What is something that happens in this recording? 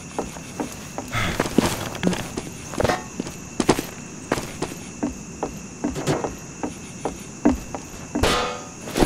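Footsteps crunch on gravel and then thud on wooden boards.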